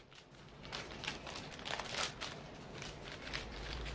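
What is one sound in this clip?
A plastic snack packet crinkles.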